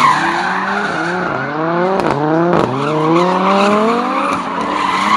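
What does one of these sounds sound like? Tyres squeal on pavement.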